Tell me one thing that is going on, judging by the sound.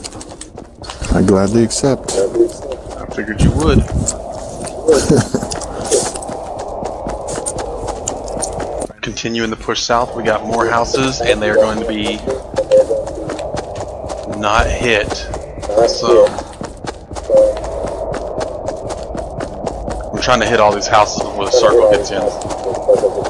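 Footsteps run quickly across grass.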